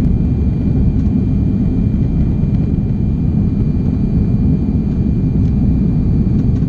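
Jet engines roar steadily inside an airplane cabin in flight.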